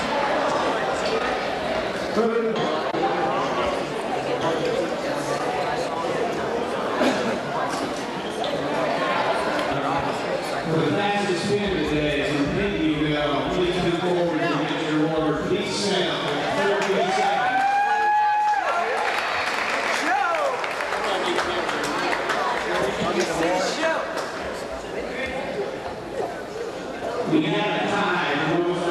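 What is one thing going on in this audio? A crowd chatters loudly in a large echoing gym.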